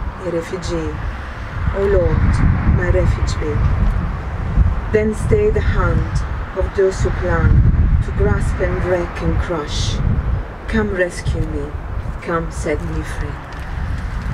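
A woman reads out aloud through a microphone, outdoors.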